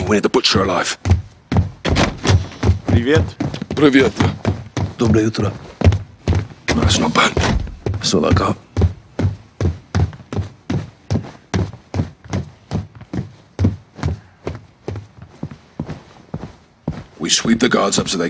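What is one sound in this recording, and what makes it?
Footsteps thud steadily down wooden stairs.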